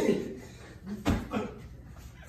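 A cushion thumps against a body.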